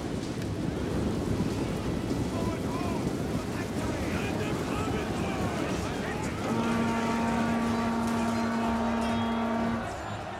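Many soldiers tramp as they march.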